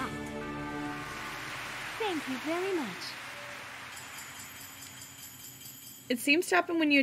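A cheerful game fanfare plays and fades.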